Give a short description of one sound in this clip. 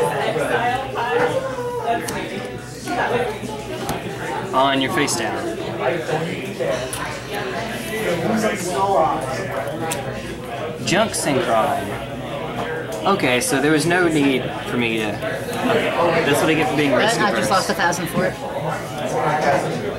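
Cards in a hand riffle and rustle.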